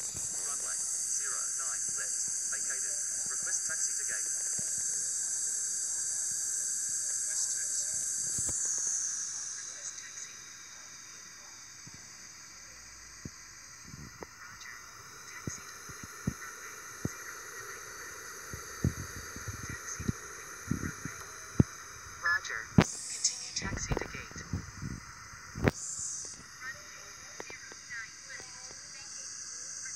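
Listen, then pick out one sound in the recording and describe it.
The jet engines of a three-engine airliner whine on the landing roll, then ease back.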